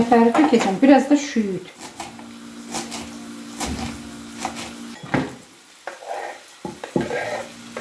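A knife chops herbs on a wooden board with quick taps.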